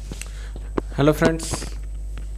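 A young man speaks briefly and closely into a microphone.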